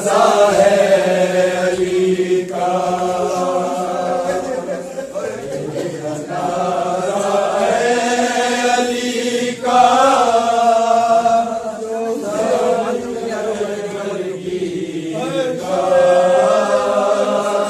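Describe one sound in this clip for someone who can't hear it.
A man chants a mournful lament loudly through a microphone.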